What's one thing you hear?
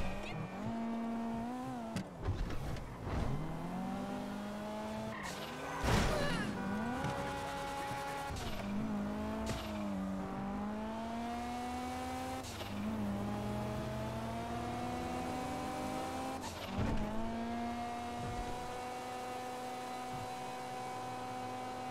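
A car engine hums and revs, rising and falling in pitch as the gears shift.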